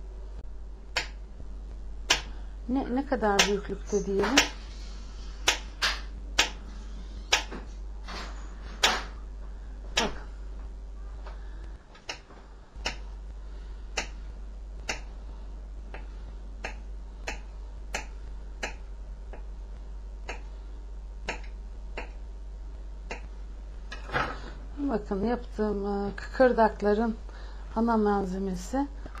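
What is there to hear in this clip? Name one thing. A knife chops repeatedly on a wooden board, in sharp, regular knocks.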